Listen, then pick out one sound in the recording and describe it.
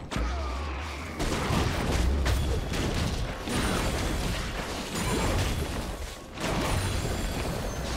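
Video game spell effects whoosh and crackle during a battle.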